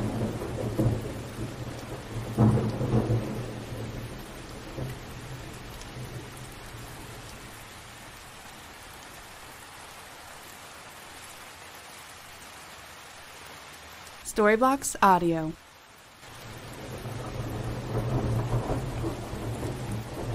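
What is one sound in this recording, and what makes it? Thunder rumbles low in the distance.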